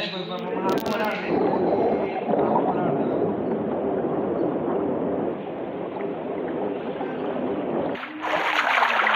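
A swimmer's strokes sound muffled underwater.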